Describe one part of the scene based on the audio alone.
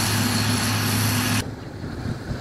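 A heavy engine drones steadily.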